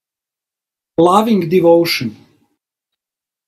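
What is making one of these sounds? An older man speaks briefly over an online call.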